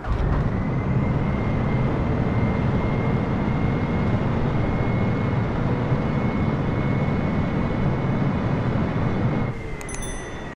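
Jet engines roar loudly with a steady high whine, then quieten.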